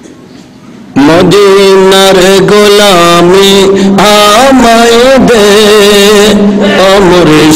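A man chants in a loud, drawn-out voice through a microphone and loudspeakers.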